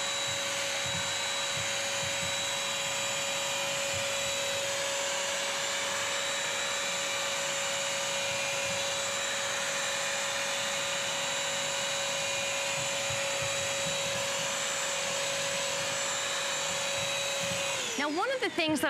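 A vacuum cleaner motor hums steadily and loudly.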